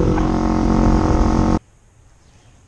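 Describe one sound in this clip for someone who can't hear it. A motorcycle engine runs loudly while riding.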